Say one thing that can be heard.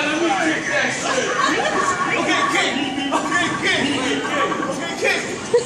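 A crowd of people talk and chatter in a noisy room.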